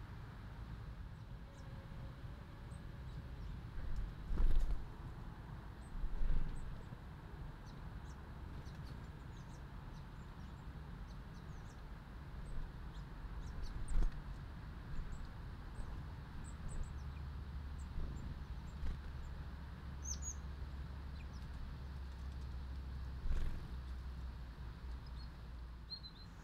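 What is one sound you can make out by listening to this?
Small birds chirp in short, high calls outdoors.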